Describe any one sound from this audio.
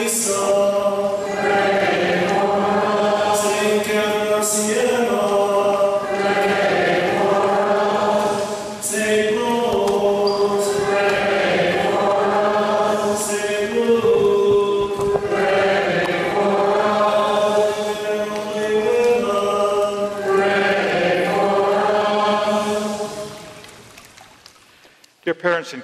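A congregation sings a slow hymn together in a large echoing room, then fades out.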